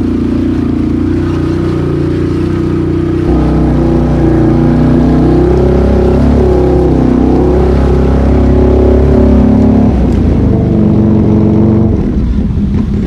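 A quad bike engine roars up close.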